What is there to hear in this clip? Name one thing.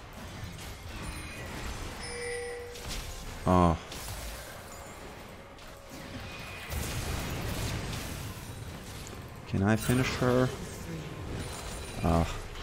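Magical spells whoosh and crackle in a fantasy battle.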